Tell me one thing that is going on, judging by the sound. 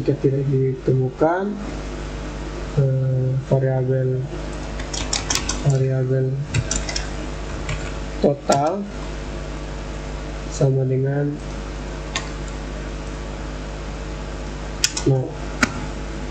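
A young man speaks calmly in short phrases close to a microphone.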